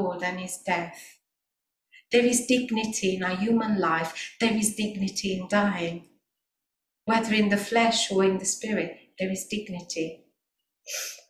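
A woman sings into a microphone with a strong, held voice.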